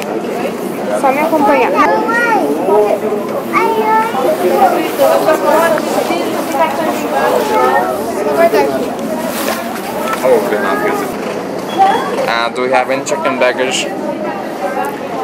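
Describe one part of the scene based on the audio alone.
A crowd of people chatters nearby, with several voices of men and women talking at once.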